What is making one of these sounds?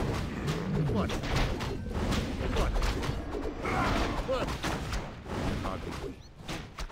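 Weapons clash and strike repeatedly in a fight.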